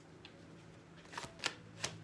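Playing cards flick and snap as they are spread out.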